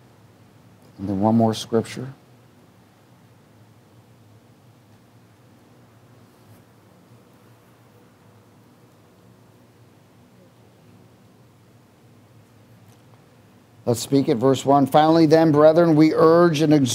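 A man speaks with emotion into a microphone, with long pauses.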